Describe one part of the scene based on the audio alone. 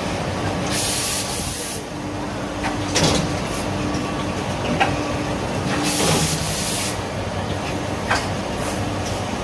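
A machine hums and rattles steadily.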